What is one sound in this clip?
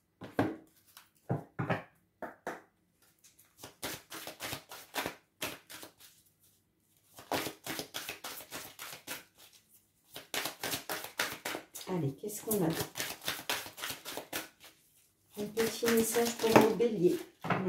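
Cards shuffle and slap together in hands.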